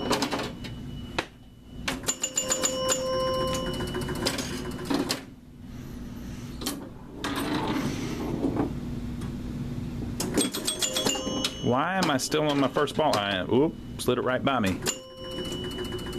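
A pinball ball clacks against bumpers and flippers.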